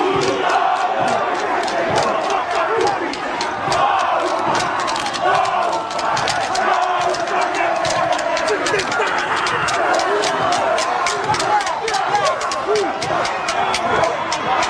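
Men stamp and slap in rhythm.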